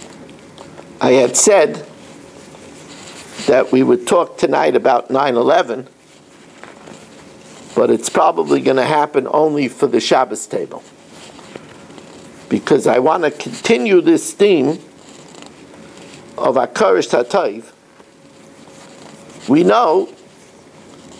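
An elderly man speaks calmly and close by, in short bursts with pauses.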